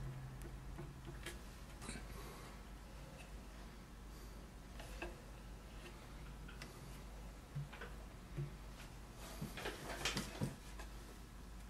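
A wooden turntable knocks and scrapes as it is turned by hand.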